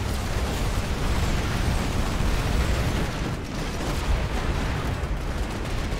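Cannons fire with booming blasts.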